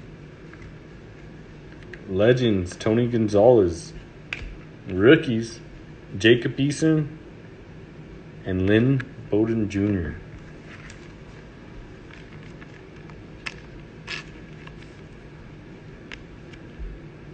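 Trading cards shuffle and tap softly as they are handled.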